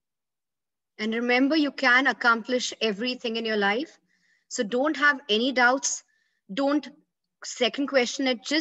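A young woman speaks calmly into a microphone, close by.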